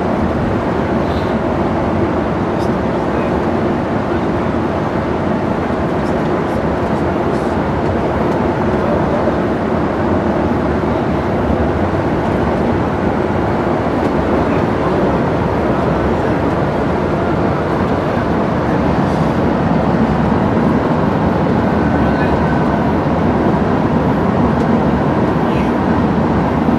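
A vehicle's engine rumbles steadily from inside its cab as it drives along.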